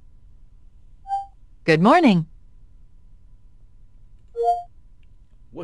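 A computer gives short, bright two-note chimes.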